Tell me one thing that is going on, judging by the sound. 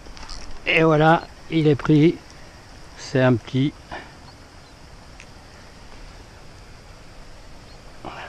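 A fishing reel whirs as it is wound in.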